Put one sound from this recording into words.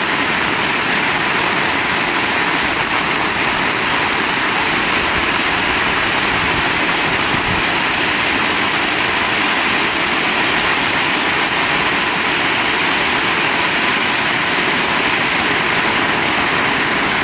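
Rainwater splashes and rushes across a paved street.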